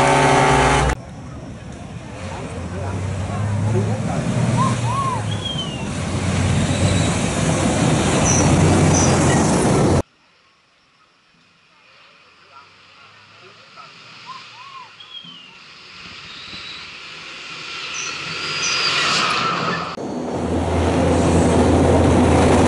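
A truck engine rumbles as a truck approaches on a dirt road and grows louder.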